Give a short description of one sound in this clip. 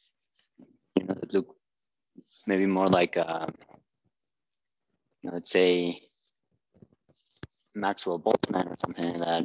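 A man speaks in a lecturing manner, close by, in a slightly echoing room.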